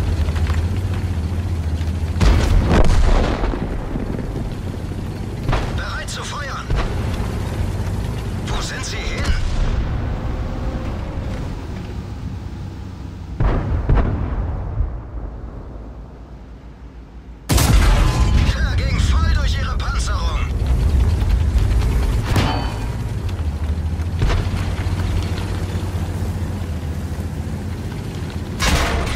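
A heavy tank engine rumbles low and steady.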